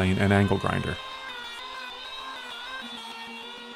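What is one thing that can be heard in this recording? A circular saw whines as it cuts through wood.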